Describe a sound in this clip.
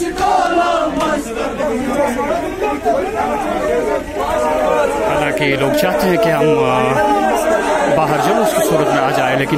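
Several men talk over one another loudly and excitedly, close by, outdoors.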